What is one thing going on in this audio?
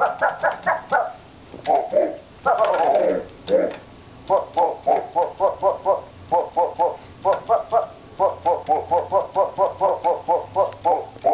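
An electronic keyboard plays short repeated notes in a quick tune.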